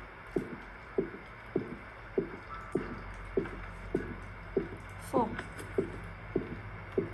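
Footsteps thud slowly and steadily on a soft floor.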